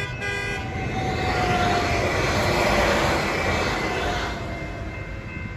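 A train rumbles past loudly, close by.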